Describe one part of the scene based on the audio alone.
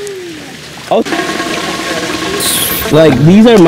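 Water splashes steadily from a small waterfall into a pool.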